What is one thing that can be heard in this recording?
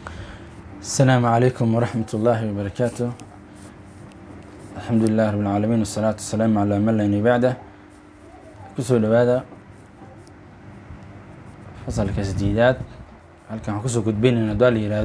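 A young man speaks into a close microphone in a slow, chanting voice.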